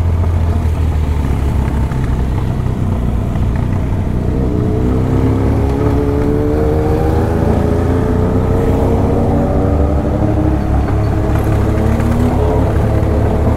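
Wind rushes loudly past a moving motorcycle.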